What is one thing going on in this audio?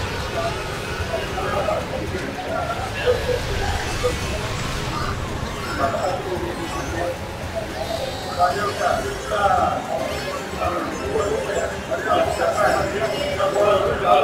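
Young men talk and exclaim with animation.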